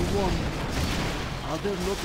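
Gunfire and explosions rumble from a battle.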